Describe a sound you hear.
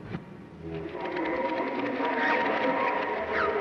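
A large cartoon creature roars and shakes loudly.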